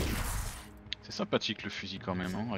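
A magic bolt whooshes past.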